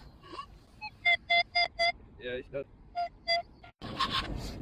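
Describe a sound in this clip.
A metal detector beeps repeatedly in short, high tones.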